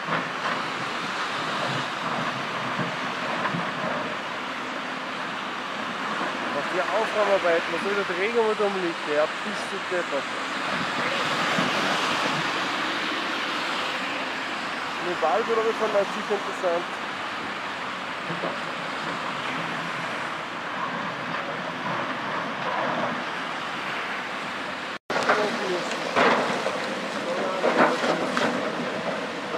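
Rocks scrape and clatter as an excavator bucket moves them.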